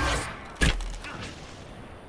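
A sword strikes with a sharp clash.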